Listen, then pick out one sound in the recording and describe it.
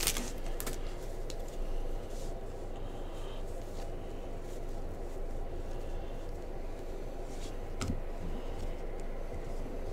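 Trading cards slide and click against each other as they are shuffled.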